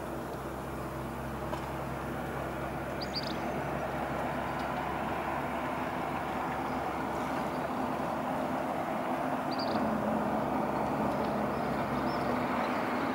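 Wind blows steadily outdoors over open water.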